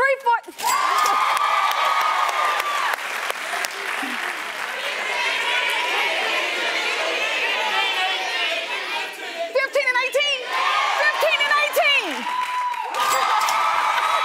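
A studio audience cheers and applauds loudly.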